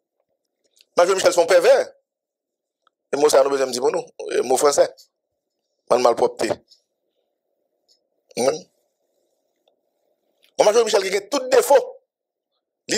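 A man speaks calmly and clearly into a microphone, in short bursts with pauses.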